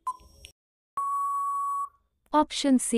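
A buzzer sounds a steady tone.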